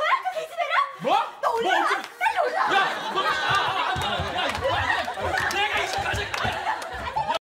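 A young man shouts and yells in a struggle.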